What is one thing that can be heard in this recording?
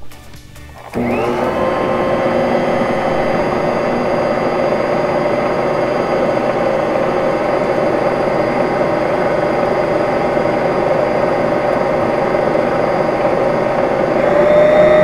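A food processor motor whirs steadily.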